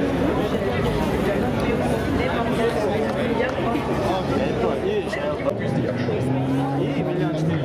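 A large crowd chatters and murmurs nearby outdoors.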